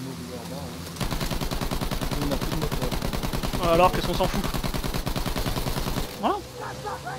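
A machine gun fires in rapid, steady bursts.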